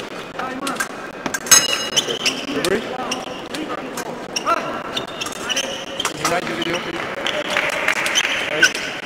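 Fencing blades click and clash sharply in an echoing hall.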